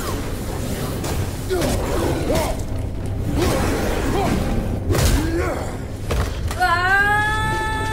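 Weapons clash and strike during a fight.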